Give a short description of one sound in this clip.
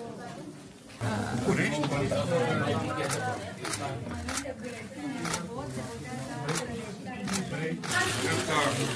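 A crowd of people murmurs and talks in a room.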